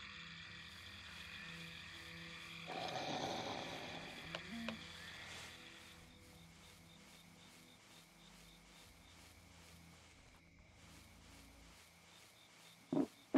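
An animal's paws patter softly on grass.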